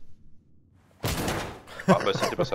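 A door swings open with a bang.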